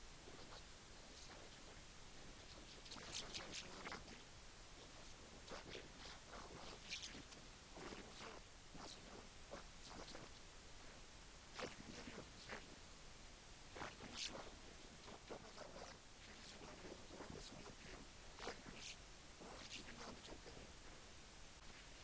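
A middle-aged man speaks with animation close to a microphone.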